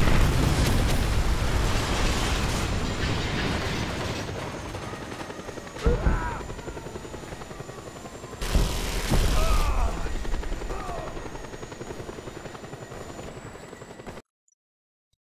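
A helicopter's rotor roars steadily overhead.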